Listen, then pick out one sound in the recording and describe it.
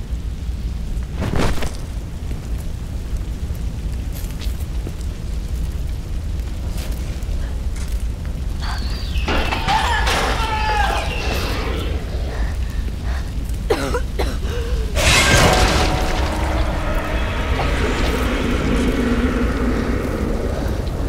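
A fire roars and crackles steadily.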